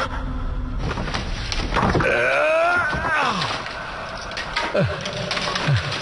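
Wooden planks crash and clatter as they fall.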